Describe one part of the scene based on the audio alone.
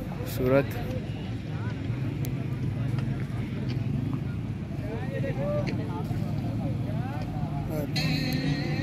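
A crowd of men chatter outdoors nearby.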